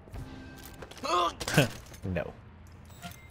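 A man shouts in alarm nearby.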